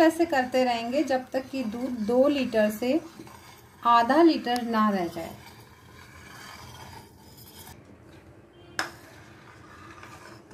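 A metal ladle scrapes against a metal pot.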